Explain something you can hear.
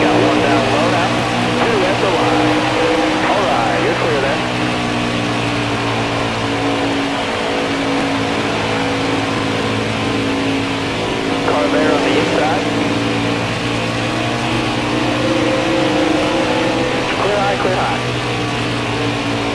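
Tyres hum and rumble on the track.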